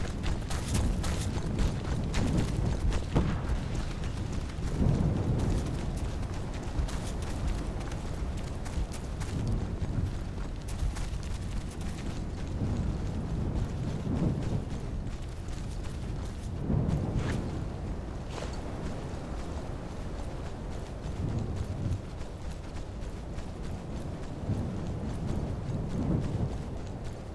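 Footsteps crunch steadily over grass and rocky ground.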